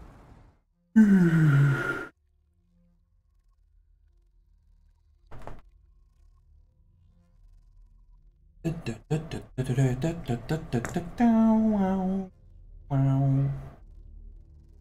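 A man speaks close to a microphone with animation.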